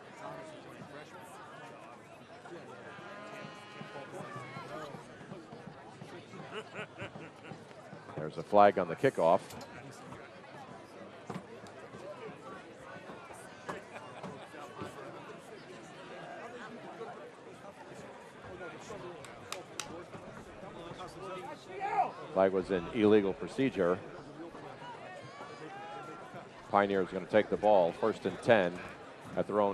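A crowd murmurs steadily in outdoor stands.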